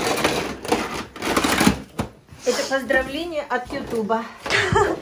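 A plastic container crackles and rustles as it is handled.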